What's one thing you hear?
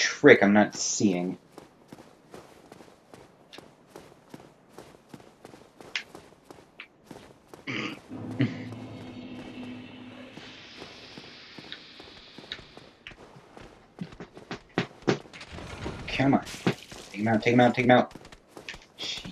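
Footsteps clatter on stone.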